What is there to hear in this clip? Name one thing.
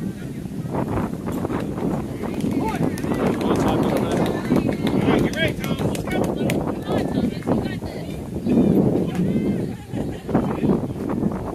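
Children and adults call out and cheer across an open ball field.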